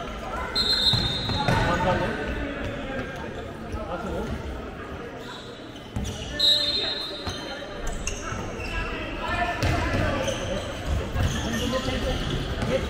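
Young handball players shout to each other in a large echoing hall.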